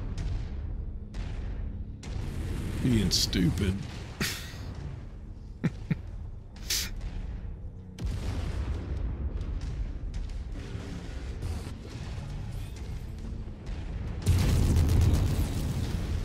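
Laser weapons fire with sharp buzzing bursts.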